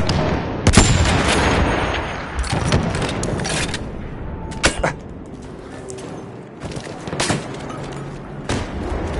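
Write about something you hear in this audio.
Rifle shots crack loudly, one at a time.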